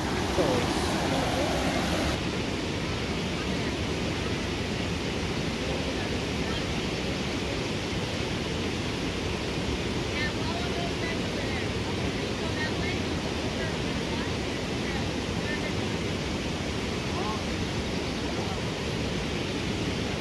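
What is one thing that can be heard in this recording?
A shallow stream trickles and babbles over rocks outdoors.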